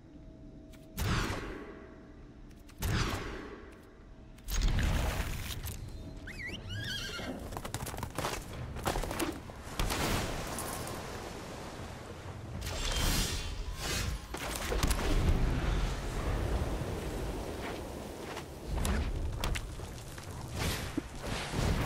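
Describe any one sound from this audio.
Playing cards swish and snap into place with short game effects.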